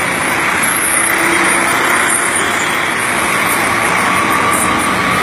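A minibus engine idles nearby.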